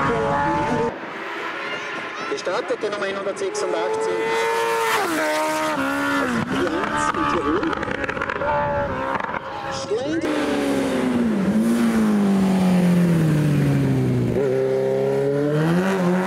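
A motorcycle engine roars at high revs, rising and falling in pitch as the bike races past and shifts gears.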